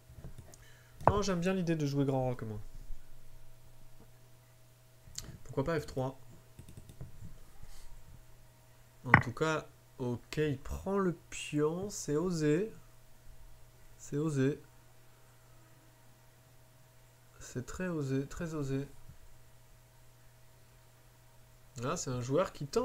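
A man speaks calmly and thoughtfully into a nearby microphone, with pauses.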